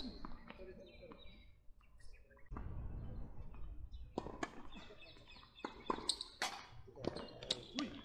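Tennis balls are struck with sharp pops of rackets.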